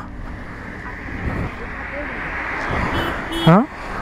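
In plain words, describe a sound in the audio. Vehicles pass by on a road outdoors.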